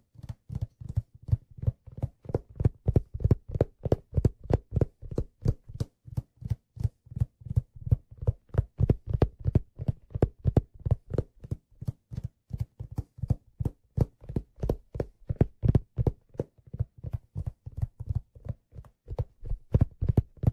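Hands tap and drum quickly on a hard, hollow hat, making close, dull knocks.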